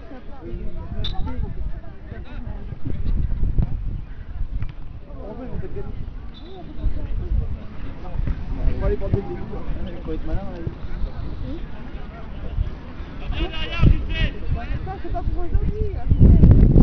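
A crowd of men, women and children chatter and call out outdoors.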